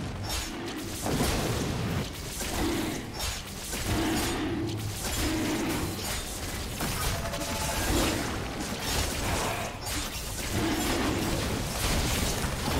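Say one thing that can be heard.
Video game spell effects crackle, whoosh and boom in a busy battle.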